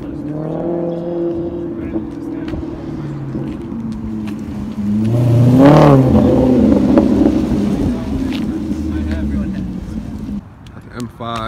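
A car engine revs loudly and roars as the car accelerates away.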